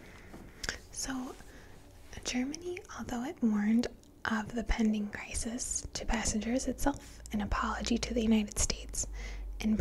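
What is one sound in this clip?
A young woman speaks calmly and close into a microphone.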